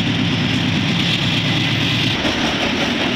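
A diesel locomotive engine rumbles loudly close by.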